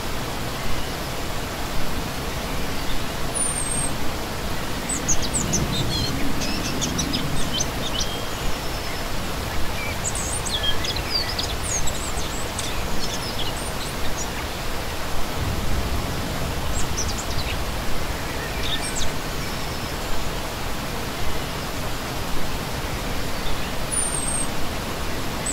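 A stream rushes and splashes steadily over rocks outdoors.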